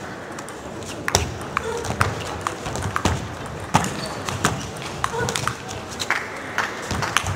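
A table tennis ball clicks sharply back and forth between paddles in a large echoing hall.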